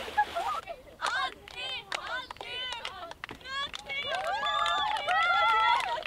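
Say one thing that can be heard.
Young women call out and laugh outdoors.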